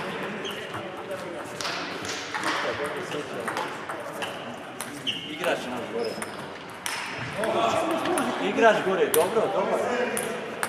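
Table tennis balls click sharply on tables and bats in a large echoing hall.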